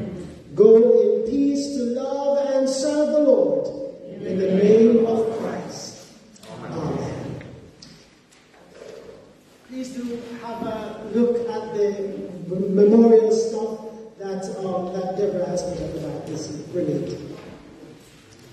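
A man preaches with animation through a microphone in an echoing room.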